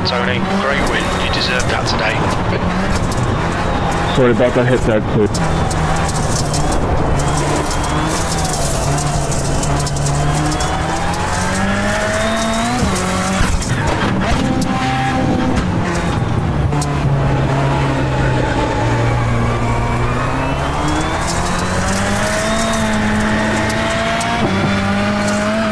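A racing car engine drones steadily, its pitch rising and falling as it revs.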